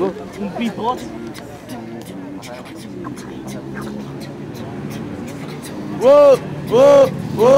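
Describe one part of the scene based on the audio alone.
A young man raps rhythmically into a microphone outdoors.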